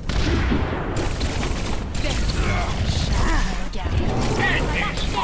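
A large energy blast whooshes.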